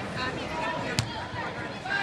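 A basketball bounces once with a sharp thud on a wooden floor.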